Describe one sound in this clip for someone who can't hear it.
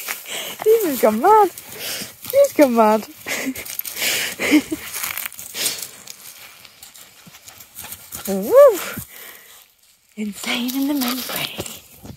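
A dog yelps and whines excitedly.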